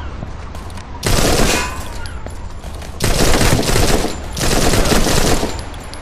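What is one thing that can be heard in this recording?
Explosions boom and rumble in a video game.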